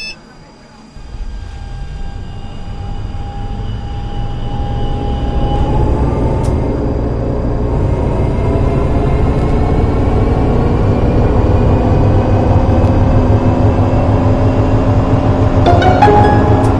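Tram wheels rumble and clatter on the rails.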